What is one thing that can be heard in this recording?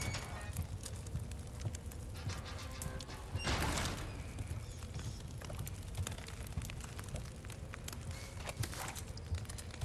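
Footsteps thud steadily on wooden floorboards.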